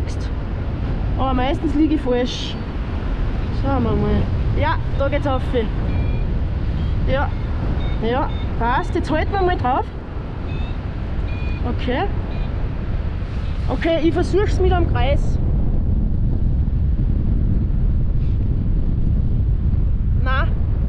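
Strong wind roars and buffets against a microphone outdoors.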